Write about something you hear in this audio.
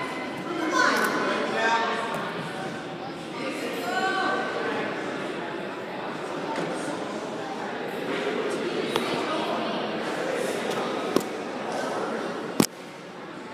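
Two grapplers' bodies shift and scuff against a padded mat.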